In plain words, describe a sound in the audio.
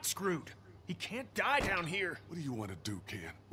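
A young man pleads with strain in his voice.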